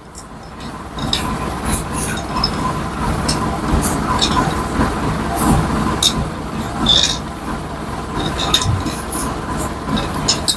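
Metal tools clink and scrape against an engine block.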